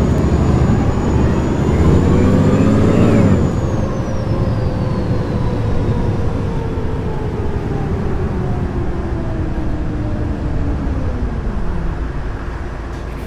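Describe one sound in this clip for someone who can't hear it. A bus engine hums and whines as the bus speeds up and then slows down.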